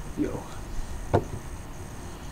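Plastic headphones knock softly onto a wooden table.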